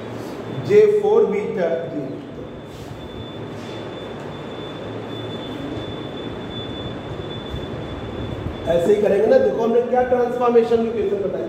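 A middle-aged man speaks calmly and explains, close by.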